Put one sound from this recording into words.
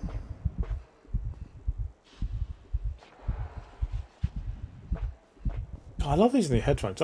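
Footsteps thud at an even pace.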